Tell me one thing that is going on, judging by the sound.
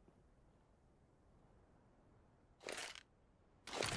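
A rifle is lowered and put away.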